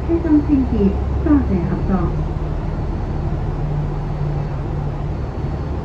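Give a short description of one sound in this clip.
A lorry rumbles past.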